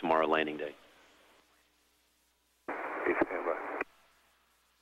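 A man speaks briefly over a radio link.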